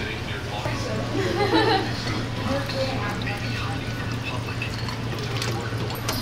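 Liquid pours over ice cubes into a glass.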